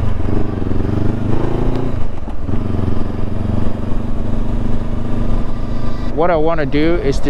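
A motorcycle engine hums and revs up and down while riding.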